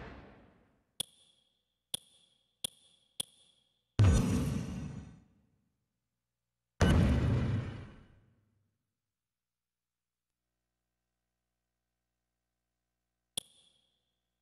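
Crisp electronic clicks tick as a menu selection moves.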